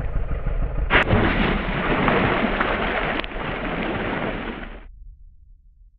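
Water splashes and churns heavily.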